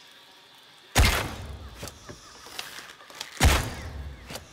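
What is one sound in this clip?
A bowstring twangs sharply as an arrow is loosed.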